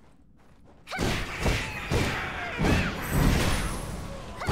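Swords clash and spells burst loudly in a fight.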